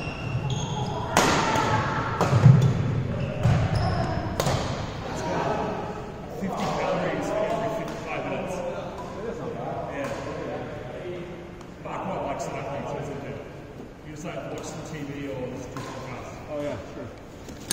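Young men talk and call out across the hall.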